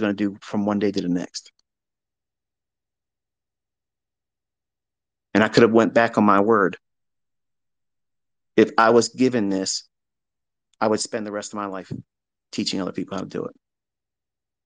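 A man speaks in short bursts with pauses, close to a microphone.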